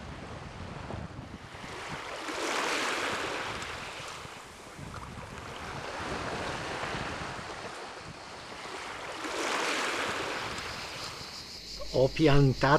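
Wind gusts outdoors, rising and falling.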